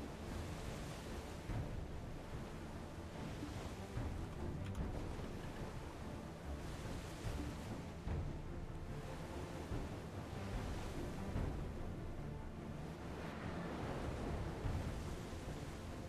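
Waves crash and splash against a ship's hull.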